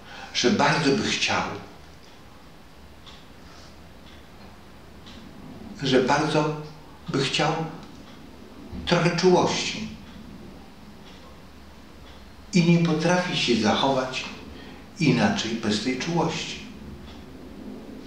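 An elderly man speaks calmly and close by, with pauses.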